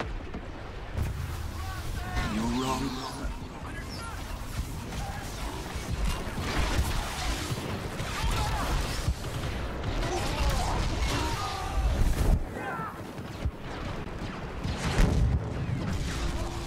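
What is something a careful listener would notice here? A lightsaber hums and swings with sharp crackles.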